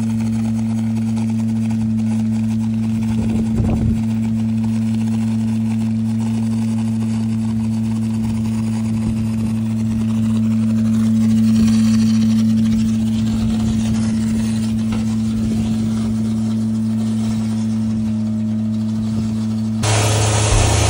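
A small gasoline engine runs with a steady hum.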